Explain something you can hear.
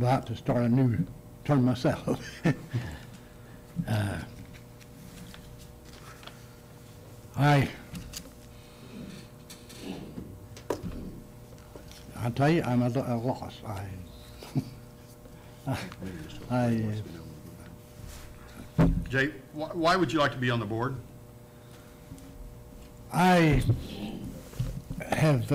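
An elderly man speaks slowly into a microphone, with pauses.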